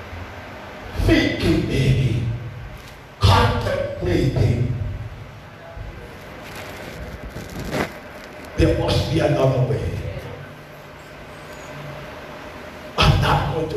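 A man preaches with animation through a microphone and loudspeakers, in a reverberant hall.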